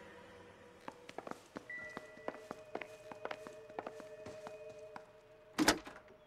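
Footsteps walk across a wooden floor.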